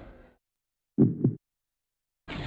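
Two short low game blips sound in quick succession.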